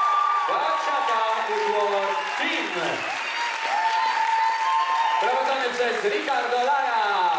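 Pop music plays loudly through loudspeakers in a large hall.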